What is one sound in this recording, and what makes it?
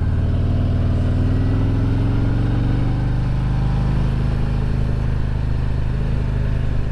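A motorcycle engine hums steadily and slowly drops in pitch as the bike rides along.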